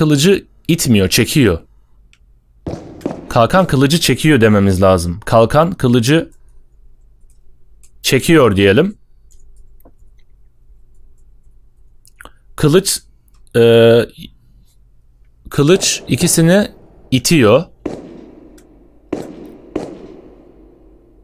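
A man talks with animation, close to a microphone, in bursts with pauses.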